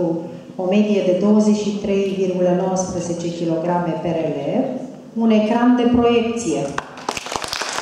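A woman sings through a microphone in a large hall.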